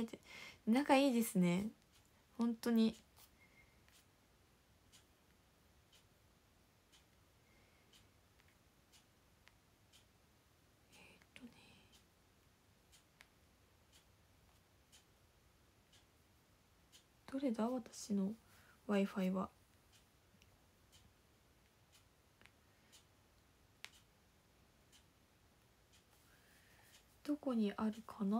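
A young woman speaks softly in short bursts, close to a microphone, with long pauses.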